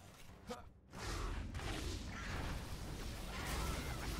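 Magic spell blasts crackle and whoosh.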